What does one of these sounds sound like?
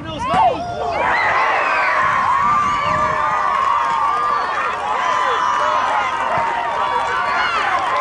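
A crowd of spectators cheers and calls out from the sidelines.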